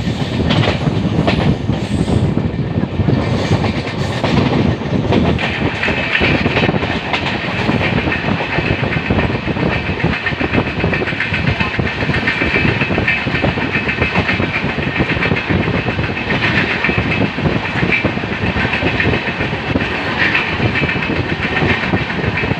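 A train rumbles and rattles loudly along the tracks.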